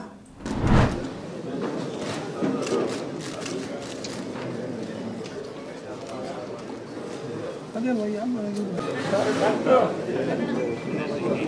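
A crowd of men murmurs in a room.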